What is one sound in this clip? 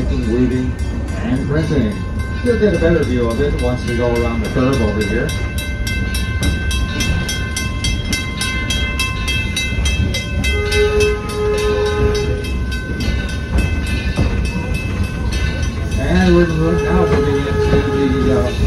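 A train rumbles and clanks steadily along the track.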